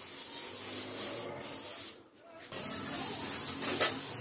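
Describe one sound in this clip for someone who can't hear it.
A spray gun hisses steadily in short bursts.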